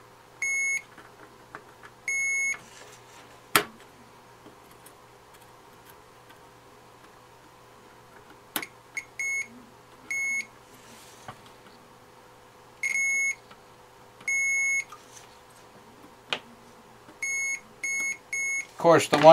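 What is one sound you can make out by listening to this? A meter beeps in short, sharp bursts.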